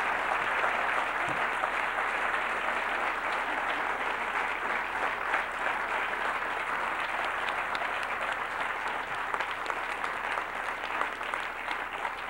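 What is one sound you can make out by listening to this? An audience applauds steadily in a large room.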